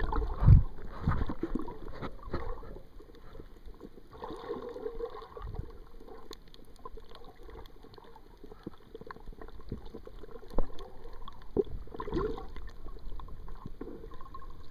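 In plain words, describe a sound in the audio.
Water swirls and bubbles close by, heard muffled underwater.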